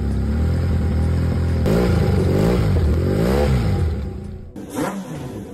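A motorcycle engine roars and revs up and down.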